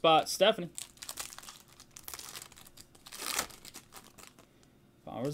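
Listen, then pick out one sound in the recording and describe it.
A foil card pack crinkles as it is torn open and handled.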